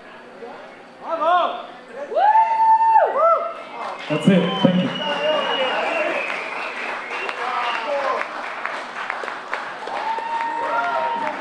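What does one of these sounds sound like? An electric guitar plays loud, bending notes through amplifiers in a large hall.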